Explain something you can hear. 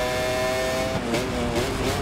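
A motorcycle engine blips and burbles as the rider brakes and shifts down.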